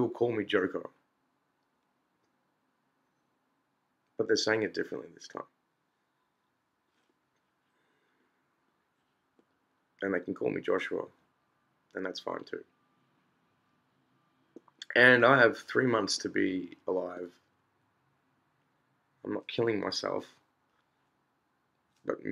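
A middle-aged man speaks calmly and close to a microphone, in short bursts with pauses.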